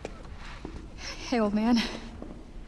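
A young woman speaks casually, close by.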